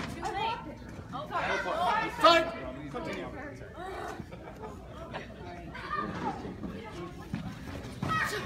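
Spectators, men and women, shout and cheer nearby.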